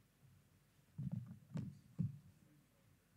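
Footsteps thump on a hollow stage floor.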